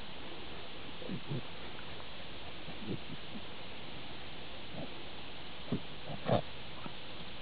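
A dog sniffs and snuffles in grass up close.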